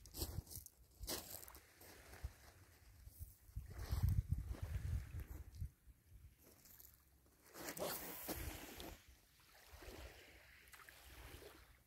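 Small waves lap gently on a pebble shore.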